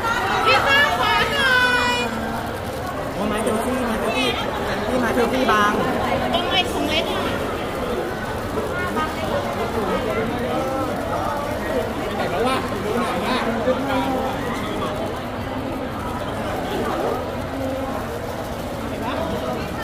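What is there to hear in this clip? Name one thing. A crowd of people call out and chatter loudly nearby.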